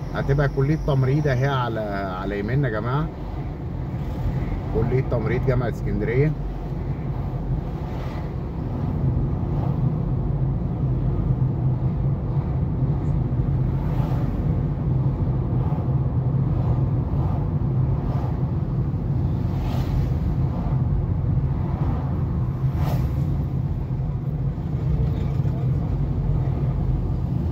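Traffic passes by on a busy street.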